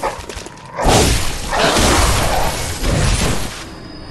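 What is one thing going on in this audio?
A blade slashes and strikes with sharp impacts.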